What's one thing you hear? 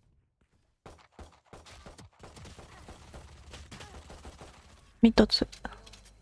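A pistol fires a few quick shots.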